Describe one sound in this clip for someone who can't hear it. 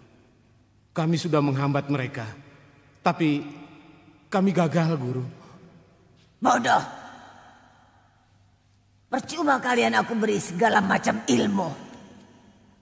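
An elderly woman speaks urgently and harshly, close by.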